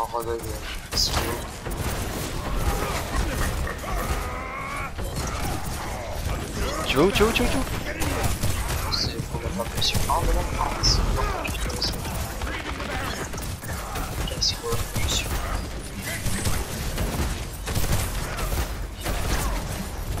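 Blasts and explosions boom sharply.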